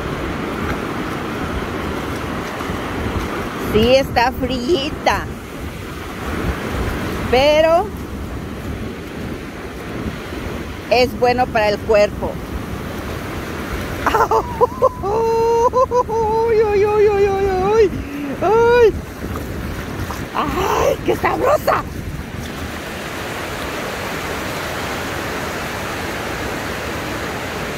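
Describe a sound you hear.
Waves wash and surge on the shore.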